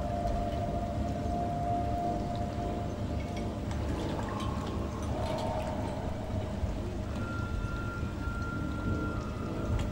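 Low, eerie music drones steadily.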